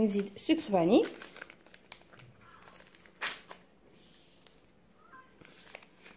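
A packet is torn open.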